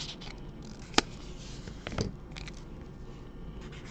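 Cards rustle and tap as hands handle them.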